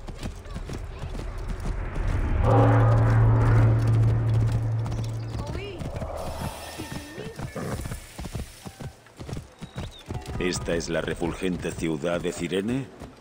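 A horse's hooves clop on stone paving.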